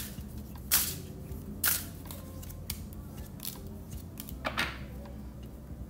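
Cards slide and tap against each other on a wooden table.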